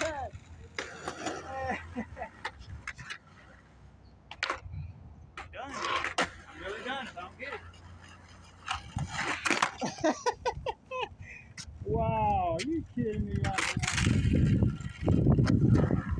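Skateboard wheels rumble over rough pavement.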